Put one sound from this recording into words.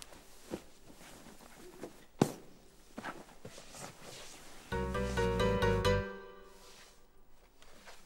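Bedding rustles as it is smoothed by hand.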